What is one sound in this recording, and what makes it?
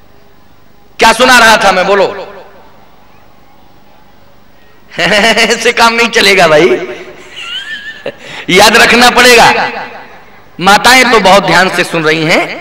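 A man speaks with animation into a microphone, his voice amplified over loudspeakers.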